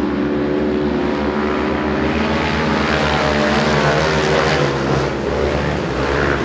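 Several motorcycle engines roar loudly and drone around a track.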